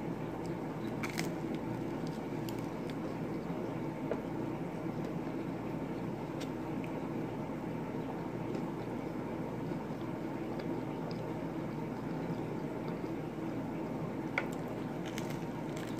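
A young woman bites into a crunchy pastry.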